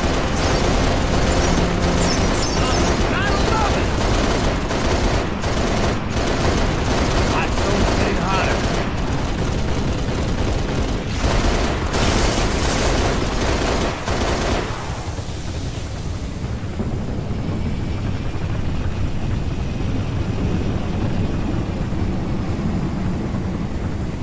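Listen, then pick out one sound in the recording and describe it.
An aircraft engine roars steadily.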